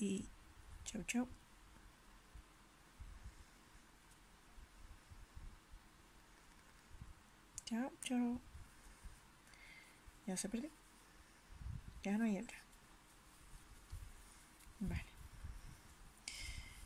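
Fingers rub and squeeze soft yarn close by.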